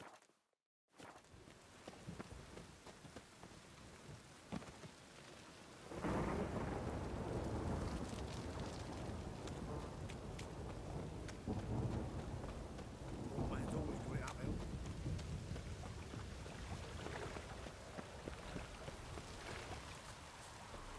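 Footsteps run quickly over stone and gravel.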